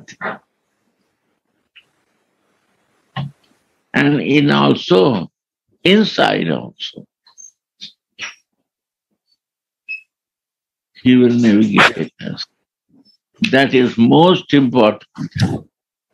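An elderly man speaks calmly through a microphone on an online call, with pauses.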